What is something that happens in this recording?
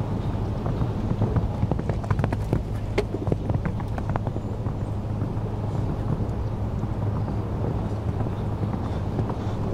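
A horse's hooves thud on sand at a canter.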